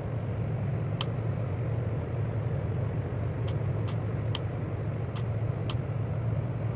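Switches click now and then.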